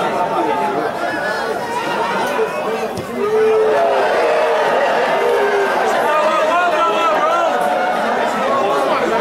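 A large crowd shouts and chatters outdoors.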